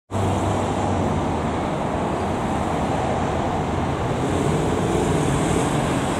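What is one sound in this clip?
Road traffic rumbles steadily outdoors.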